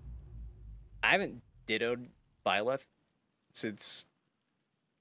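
A young man speaks briefly into a microphone.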